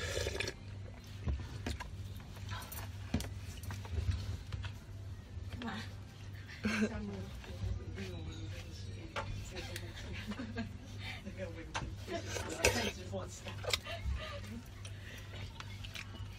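A young woman chews food with soft, wet sounds.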